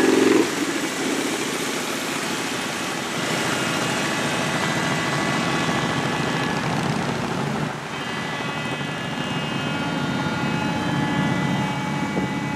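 Cars drive slowly past on the road.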